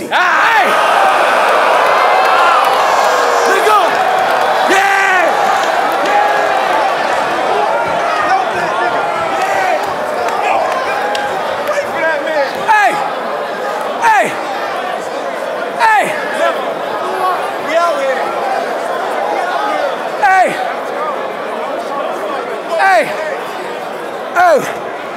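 A crowd cheers and shouts loudly in a large echoing hall.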